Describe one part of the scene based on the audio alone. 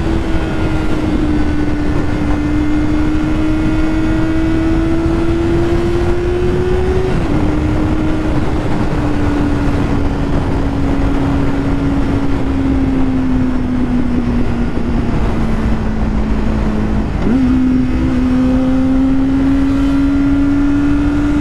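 A motorcycle engine hums steadily, dropping briefly as gears shift.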